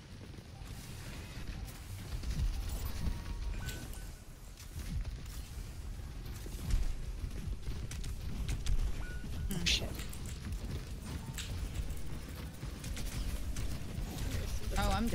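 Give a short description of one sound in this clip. A young woman talks quietly into a microphone.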